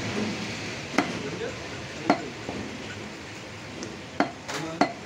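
A cleaver chops through meat onto a wooden block with sharp thuds.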